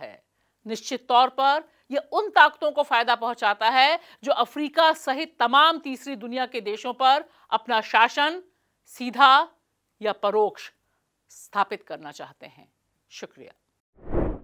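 A woman speaks clearly and with animation into a microphone.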